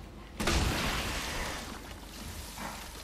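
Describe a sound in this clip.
A gunshot blasts loudly at close range.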